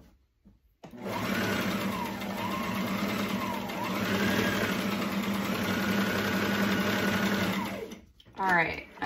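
A sewing machine runs with a steady, fast whirring hum.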